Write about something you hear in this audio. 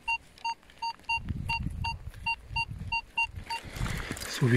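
A metal detector beeps in a quick, even rhythm.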